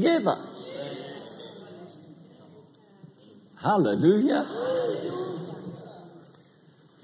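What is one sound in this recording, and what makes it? A middle-aged man speaks to an audience through a microphone in a large echoing hall.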